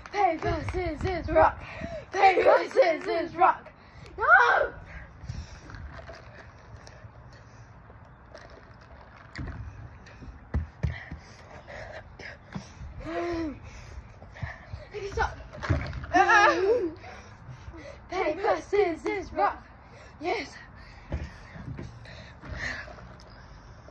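Young girls talk and laugh excitedly close by.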